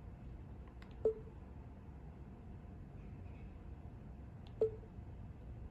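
A handheld game console beeps briefly as a menu selection changes.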